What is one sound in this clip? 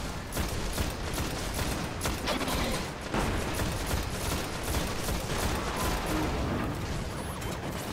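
Energy blasts explode with loud booms.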